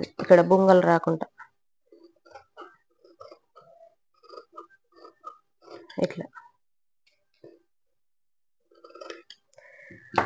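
Scissors snip through cloth.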